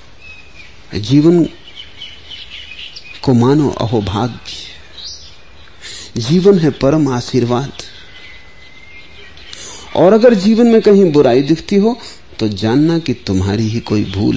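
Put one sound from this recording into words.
A man speaks slowly and calmly, with long pauses.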